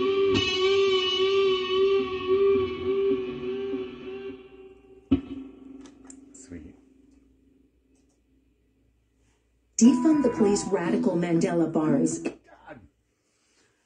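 An electric guitar plays ringing, sustained notes that slowly fade, then a fast burst of heavy riffing.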